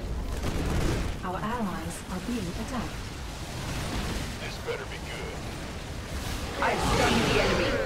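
Gunfire and explosions rattle in a battle.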